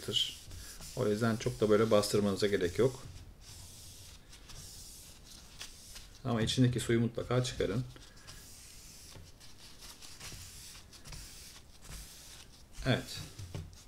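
An eraser rubs softly across paper.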